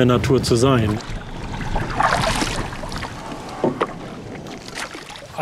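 Water laps against a wooden boat.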